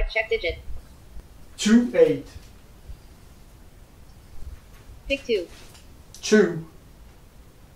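A man speaks briefly and calmly into a headset microphone, close by.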